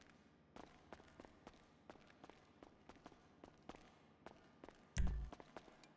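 Footsteps clatter quickly down metal stairs.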